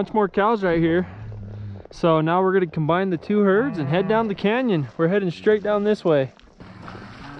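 A man calls out loudly to cattle nearby.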